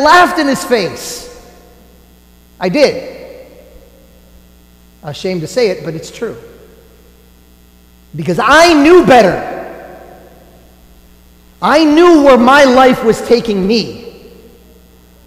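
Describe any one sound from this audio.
A man chants in a sung voice, in phrases with pauses, echoing in a large hall.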